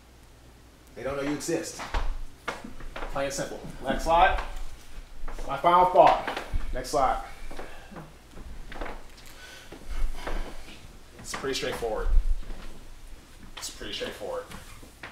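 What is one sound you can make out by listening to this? A man speaks calmly and clearly through a small microphone in a room.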